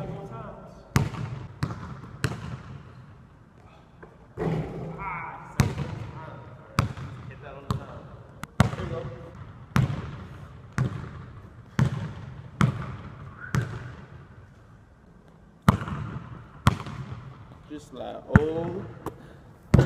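A basketball bounces on a wooden floor, echoing through a large hall.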